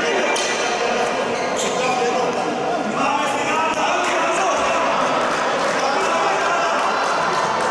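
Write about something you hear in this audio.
Sports shoes squeak on a hard court floor.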